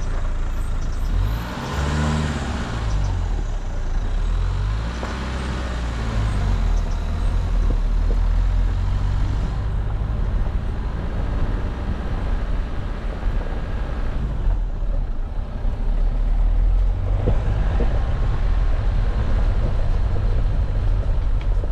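A vehicle engine hums and revs up and down.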